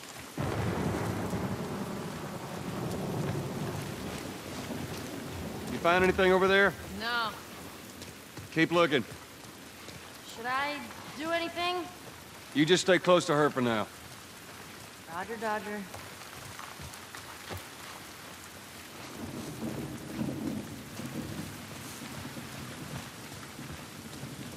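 Footsteps crunch over wet ground and gravel.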